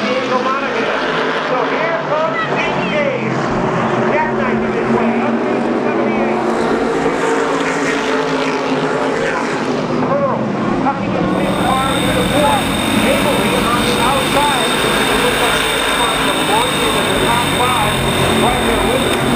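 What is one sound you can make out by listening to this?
Race car engines roar and whine steadily as the cars race around a track.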